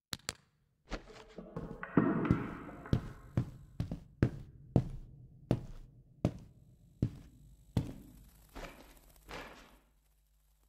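Footsteps walk steadily along a hard floor.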